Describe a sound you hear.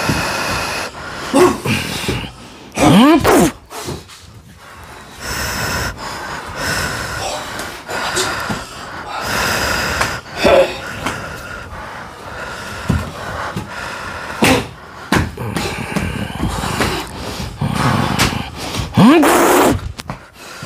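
Bare feet thump and slap on a tiled floor.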